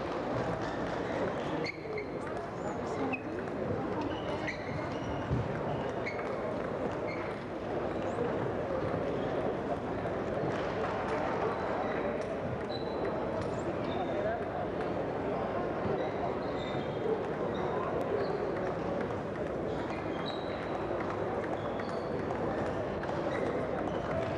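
A crowd murmurs throughout a large echoing hall.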